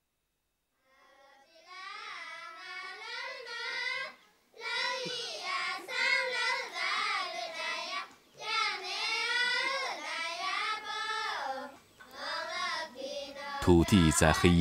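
A group of young girls sing together in chorus.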